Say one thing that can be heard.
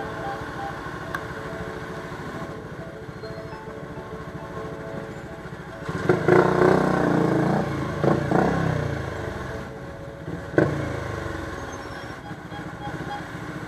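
A motorcycle engine idles and rumbles close by.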